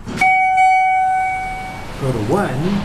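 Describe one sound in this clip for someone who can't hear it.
An elevator chime rings with a clear, bright tone.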